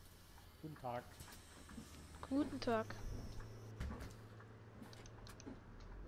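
A bus door hisses shut.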